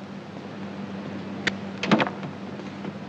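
A knuckle knocks on a wooden door.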